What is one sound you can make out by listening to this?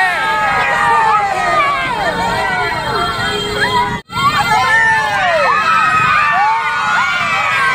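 Women shout with excitement close by.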